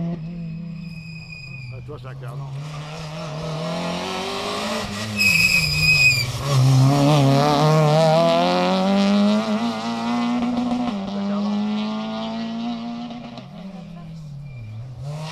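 A rally car engine revs hard as it approaches, then roars past and fades away.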